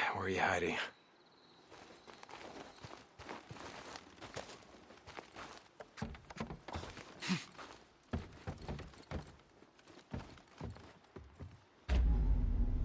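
Footsteps thud on wooden boards and a ladder.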